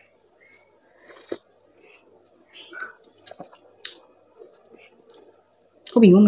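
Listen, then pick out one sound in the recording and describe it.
A young woman chews and smacks her lips, close to a microphone.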